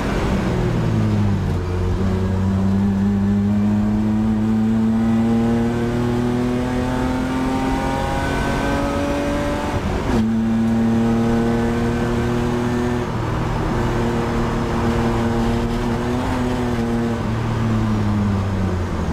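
A race car engine roars loudly from inside the cabin, rising in pitch and dropping sharply at a gear change.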